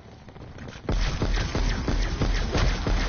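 A rapid burst of gunfire rings out loudly.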